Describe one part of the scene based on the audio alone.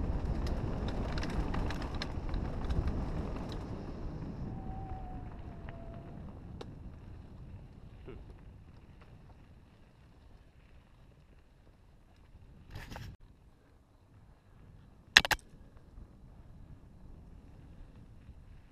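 Bicycle tyres crunch and rattle over a dirt trail.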